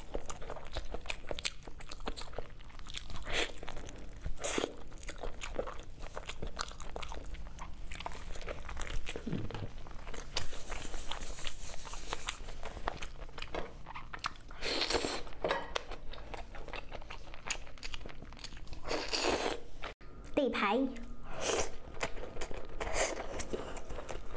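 A young woman chews meat with wet, sticky sounds close to a microphone.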